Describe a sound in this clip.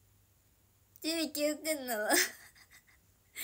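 A young woman giggles, close to the microphone.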